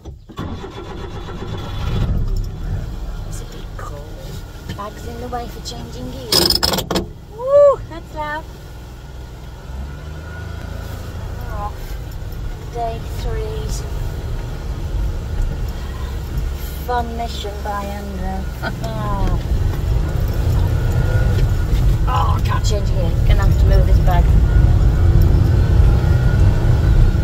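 A vehicle engine rumbles steadily and grows louder.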